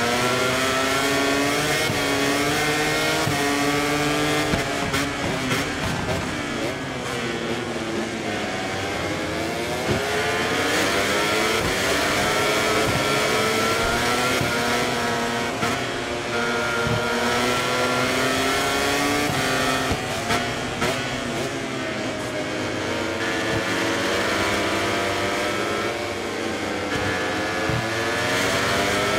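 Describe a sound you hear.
A motorcycle engine screams at high revs, rising and falling as gears shift.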